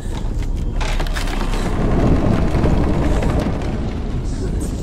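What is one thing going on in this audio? Heavy wooden doors grind and rumble open.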